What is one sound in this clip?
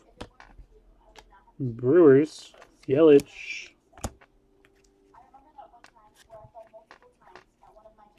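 Trading cards flick and tap against each other in someone's hands.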